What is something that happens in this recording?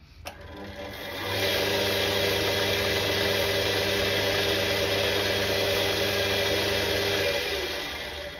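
Sandpaper rubs against spinning wood.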